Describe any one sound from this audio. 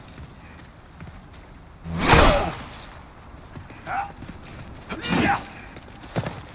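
A sword swings and clashes with a metallic ring.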